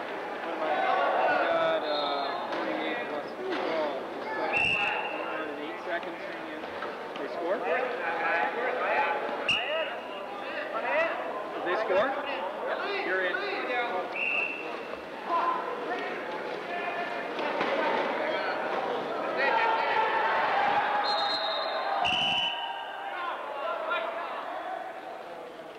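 Men shout and call out to one another in a large echoing hall.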